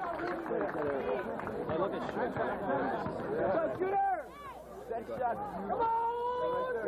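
A large crowd of young people chatters and shouts outdoors.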